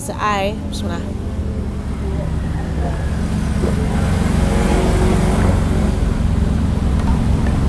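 A woman gulps water from a plastic bottle.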